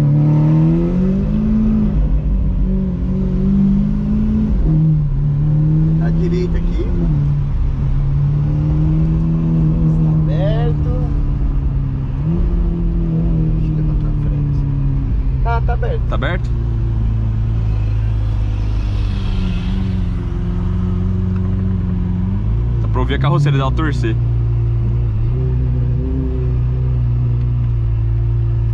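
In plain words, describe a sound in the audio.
A sports car engine roars loudly from close by, revving up and down.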